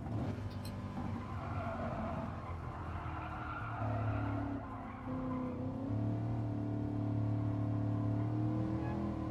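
A car engine drones and shifts pitch as it races.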